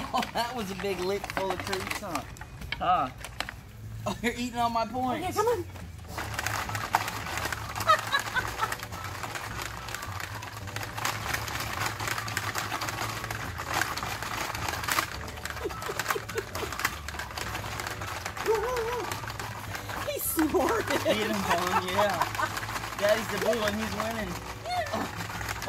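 Plastic pieces clatter and rattle as a dog noses at a toy.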